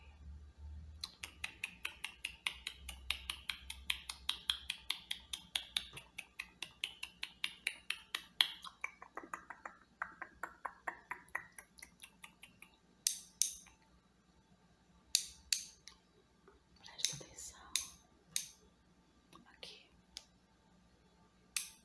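Fingernails tap and click against a small metal socket.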